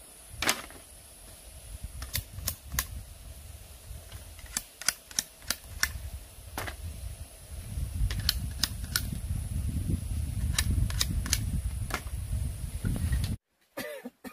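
Bamboo strips clatter as they are moved.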